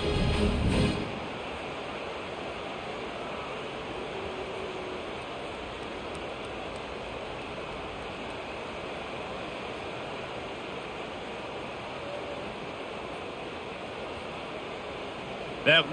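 A stadium crowd murmurs steadily in the distance.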